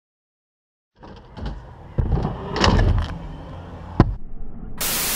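Scooter wheels roll and rumble over concrete.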